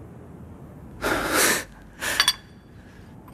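A porcelain lid scrapes and clinks against a teacup.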